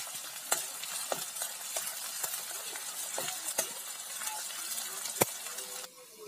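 A metal spatula scrapes and clicks against a pan.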